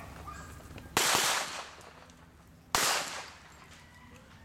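A pistol fires loud single shots that echo outdoors.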